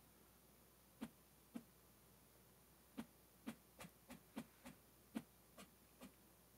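Light knocks sound as roof panels are set in place.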